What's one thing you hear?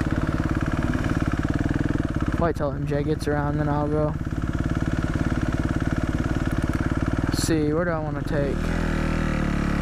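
A dirt bike engine runs close by with a steady, rapid chug.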